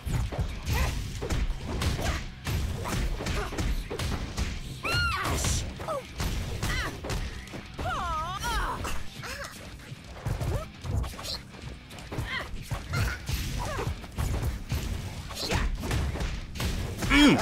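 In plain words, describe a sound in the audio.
Fire whooshes and crackles in a video game.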